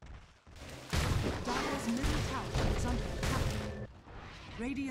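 Game spell effects crash and burst during a fight.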